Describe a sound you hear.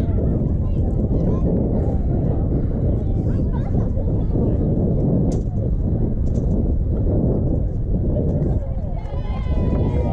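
Young players clap their hands.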